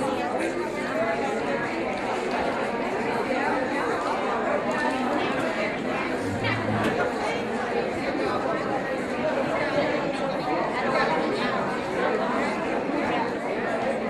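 A group of older women sing together.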